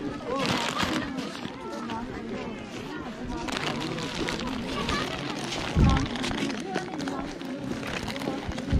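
Several men and women chat and talk nearby outdoors.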